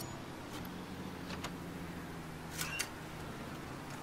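A metal door swings open.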